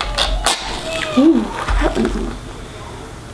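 A young child speaks softly nearby.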